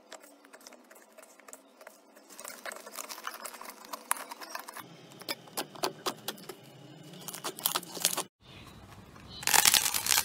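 Hands knead and squeeze a soft slime with sticky squelches.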